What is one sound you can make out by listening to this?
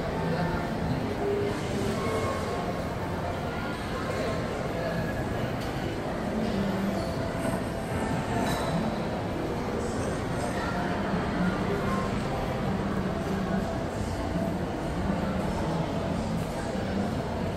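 A crowd of people chatter indistinctly in a large, echoing indoor hall.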